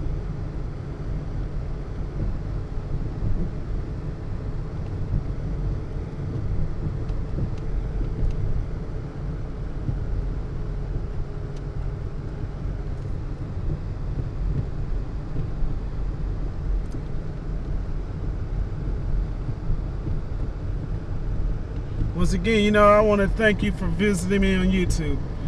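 A car engine hums low and steady, heard from inside the car.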